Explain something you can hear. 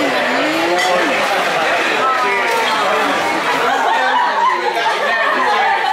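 Glasses clink together in a toast.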